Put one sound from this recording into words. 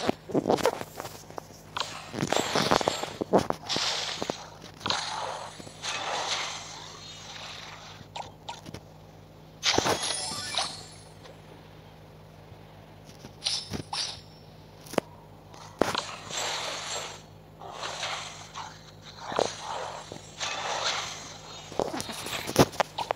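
Magical blasts and whooshes burst out in a fantasy battle.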